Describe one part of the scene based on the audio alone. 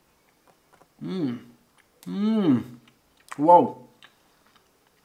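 A young man speaks close by in short, drawn-out phrases.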